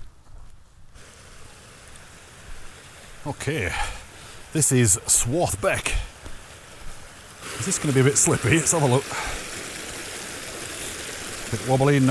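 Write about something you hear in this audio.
A stream rushes and splashes over rocks nearby.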